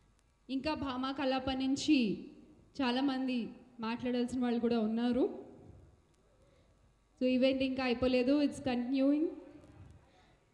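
A young woman sings through a microphone and loudspeakers in a large hall.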